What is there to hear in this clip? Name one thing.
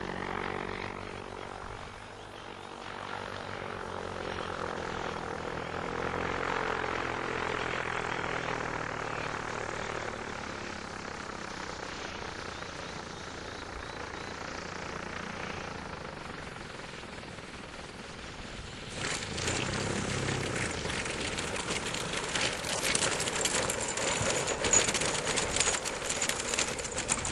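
A small aircraft engine drones in the distance and grows louder as it comes closer.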